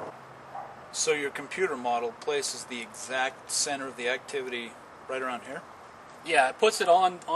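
A second man answers in a low voice.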